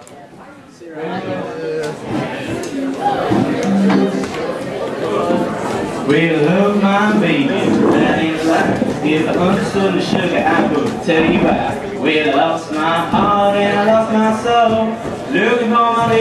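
An electric guitar plays a lively tune through an amplifier.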